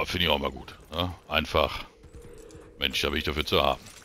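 A horse's hooves thud on a dirt road.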